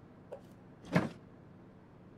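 A cabinet door clicks open.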